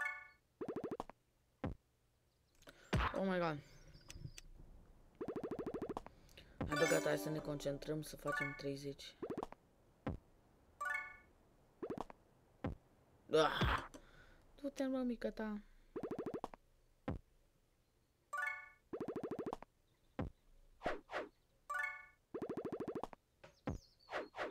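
Short electronic tones and chimes sound from a mobile game, again and again.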